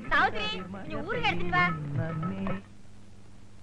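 A middle-aged woman sings loudly.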